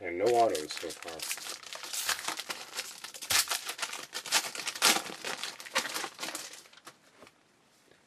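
A foil card wrapper crinkles and tears as it is opened.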